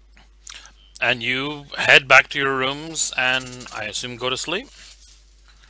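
A man speaks loudly and with animation over an online call.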